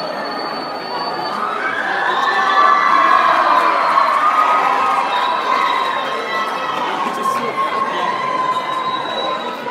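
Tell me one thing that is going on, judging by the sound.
A guitar strums along with the singing.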